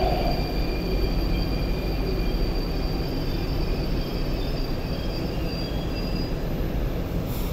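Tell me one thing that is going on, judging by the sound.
Train brakes squeal with high, steady tones.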